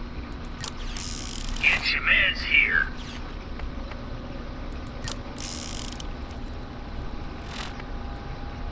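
Short electronic menu chimes and whooshes sound as items are selected.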